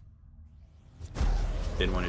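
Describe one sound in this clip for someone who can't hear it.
A blade swishes through the air with a sharp whoosh.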